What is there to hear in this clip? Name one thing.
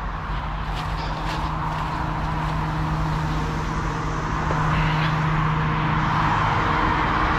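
Tyres roll over a road with a steady rushing noise.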